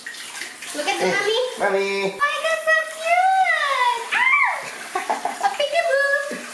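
A baby squeals and babbles happily close by.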